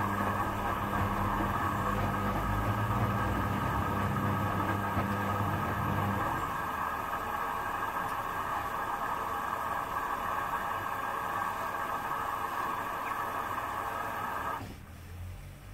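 Wet laundry sloshes and tumbles inside a washing machine.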